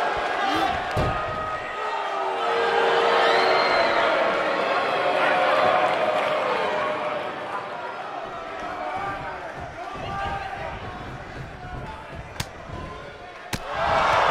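Bodies thud on a ring mat.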